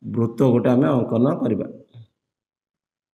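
A young man speaks clearly and steadily.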